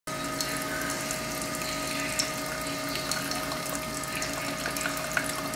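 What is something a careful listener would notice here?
A coffee maker hums steadily.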